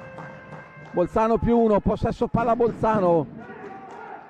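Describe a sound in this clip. A crowd of spectators chants loudly in an echoing hall.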